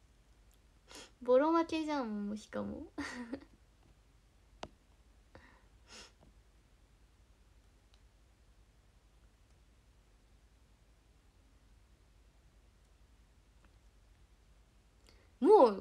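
A young woman speaks with animation close to a phone microphone.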